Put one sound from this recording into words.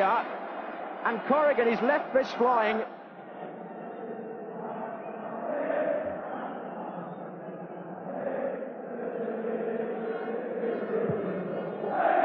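A large stadium crowd roars and murmurs steadily outdoors.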